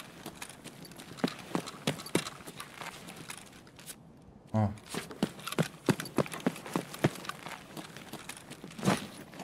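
Footsteps tread quickly over a hard floor.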